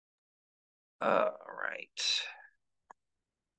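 A young man speaks close to the microphone, heard through an online call.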